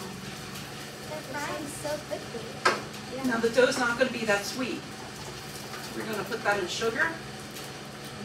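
A young girl speaks close to a microphone.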